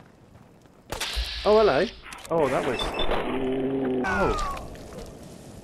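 A laser gun fires with a loud, buzzing blast.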